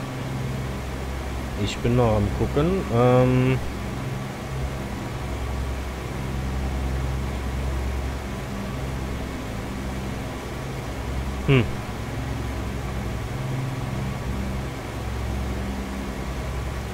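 Aircraft engines drone steadily and low.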